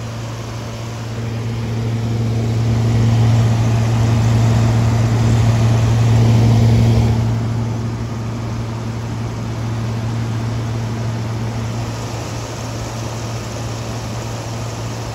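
An air conditioner hums steadily with a low drone and whirring fan noise.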